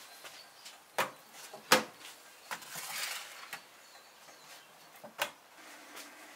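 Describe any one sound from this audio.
A metal oven door clanks open and shut.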